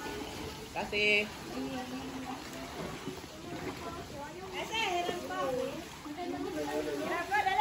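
Young children call out and chatter nearby.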